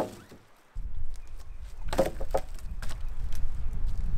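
A log drops onto other logs with a dull thud.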